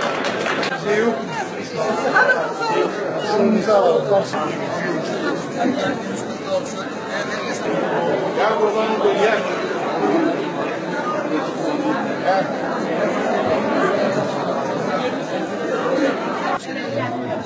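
A large crowd of men and women chatters loudly all around, outdoors.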